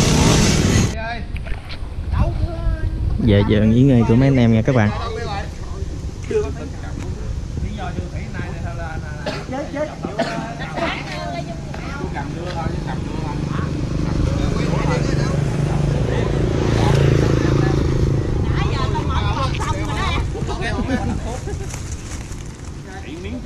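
Several men talk casually nearby outdoors.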